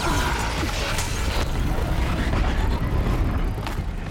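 A cloud of smoke bursts with a loud hiss.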